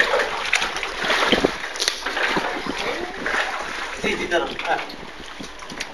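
Bare feet splash through shallow water.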